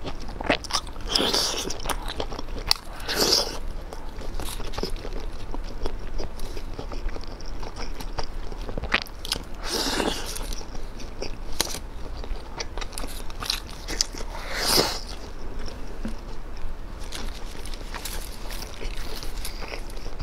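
Food crackles and crunches as it is torn by hand.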